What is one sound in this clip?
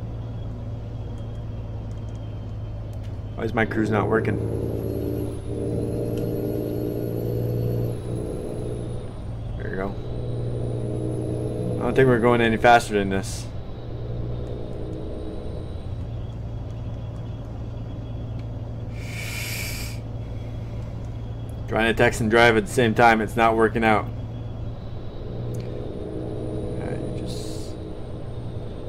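A semi truck's diesel engine drones while cruising on a highway.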